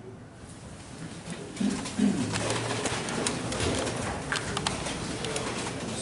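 Chairs shuffle and scrape as people sit.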